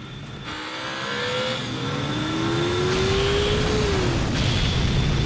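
A racing engine revs up with a rising whine.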